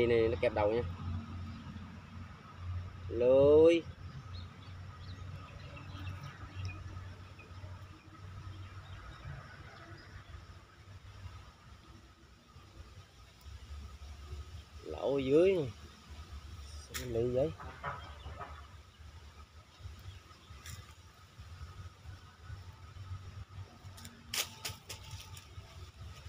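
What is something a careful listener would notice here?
A wire trap rattles and clinks as it is handled.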